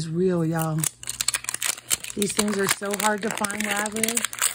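A plastic wrapper crinkles and rustles as hands peel it.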